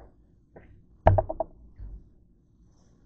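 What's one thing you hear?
A plastic bottle is lifted and set down again on a counter.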